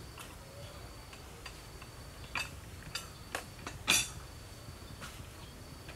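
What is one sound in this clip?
Plates clink as they are set down on a wooden table.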